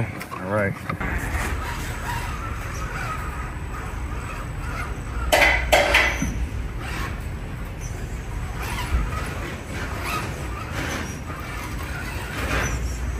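A small electric motor whirs steadily.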